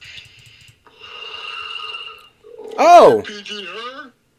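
Electronic game sound effects chime and whoosh.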